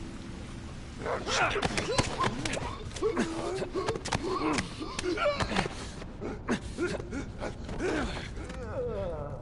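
Bodies scuffle and thud in a violent struggle.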